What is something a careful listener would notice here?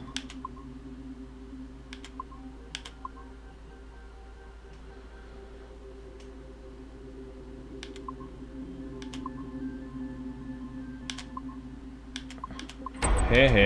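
Soft electronic blips and clicks sound from a game.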